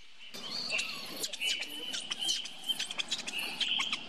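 A baby monkey squeals in high, short cries.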